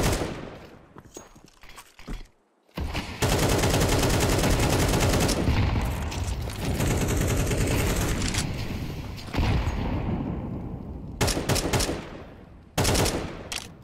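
A rifle fires quick bursts of sharp shots.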